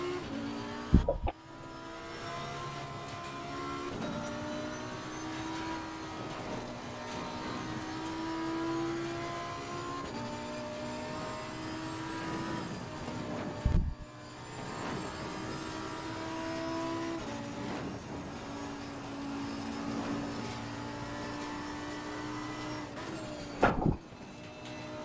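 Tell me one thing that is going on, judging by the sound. A car's gearbox thumps loudly at a gear change.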